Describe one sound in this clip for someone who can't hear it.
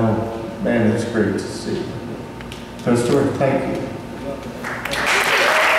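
An elderly man speaks slowly and clearly into a microphone, heard through a loudspeaker.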